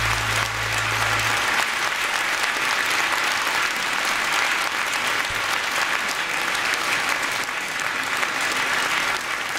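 Small waves wash gently onto a shore.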